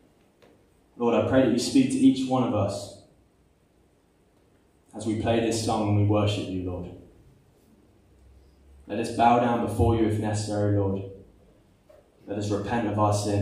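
A young man speaks calmly through a microphone, in bursts with pauses, in a slightly echoing room.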